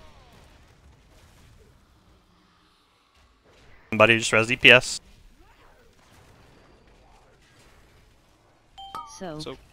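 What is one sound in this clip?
Magic spells crackle and whoosh during a fantasy battle.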